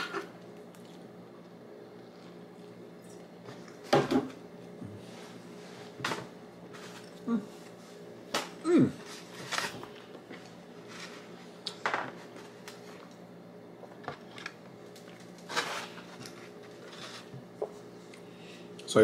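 A man chews food with his mouth close by.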